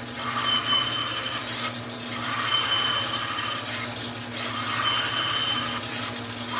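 A band saw blade cuts through wood in bursts.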